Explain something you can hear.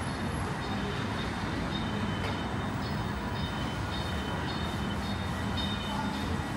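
A bus engine rumbles steadily nearby.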